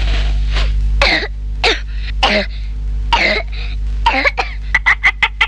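A young boy coughs and splutters.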